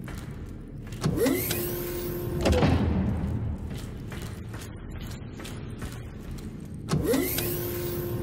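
An elevator call panel beeps as it is pressed.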